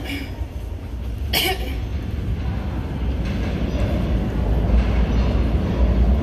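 A subway train rumbles closer, growing louder.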